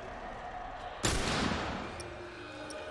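A gunshot bangs loudly and echoes away.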